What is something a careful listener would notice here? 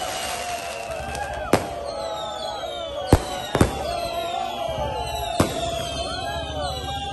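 A crowd of men chants and shouts loudly outdoors.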